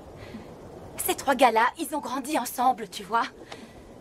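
Another young woman answers with urgency nearby.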